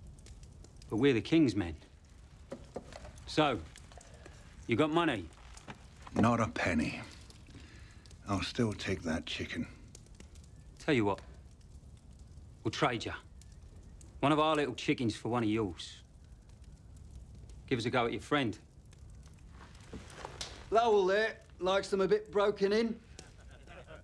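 An adult man speaks calmly in short phrases.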